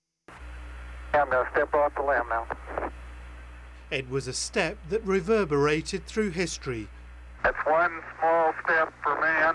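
A man speaks calmly over a crackly radio link.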